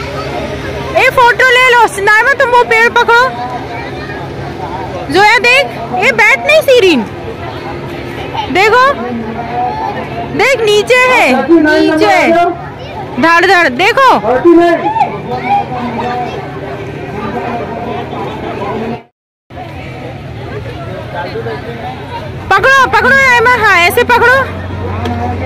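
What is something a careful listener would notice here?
Young girls shout and squeal excitedly close by.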